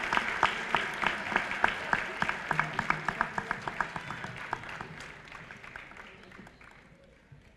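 A group of young people claps in a steady rhythm, loud at first and then fading.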